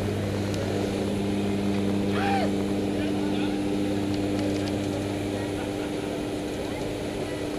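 An aircraft engine drones loudly and steadily inside the cabin.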